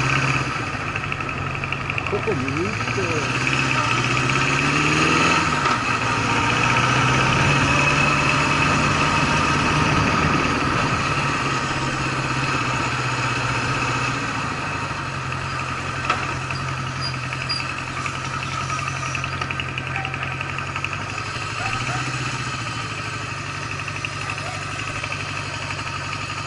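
A motorcycle engine hums steadily, its pitch rising and falling with the throttle.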